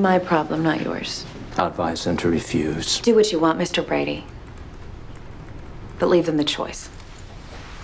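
A woman speaks firmly and with animation nearby.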